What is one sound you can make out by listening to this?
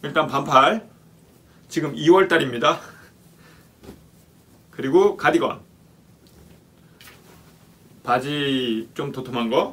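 Clothes rustle as they are unfolded and shaken.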